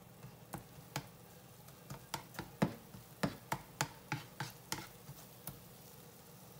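A spatula taps and scrapes against a pan.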